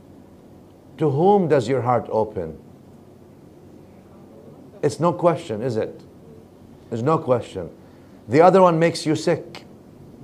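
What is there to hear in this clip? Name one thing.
A middle-aged man speaks calmly into a microphone, in short phrases with pauses.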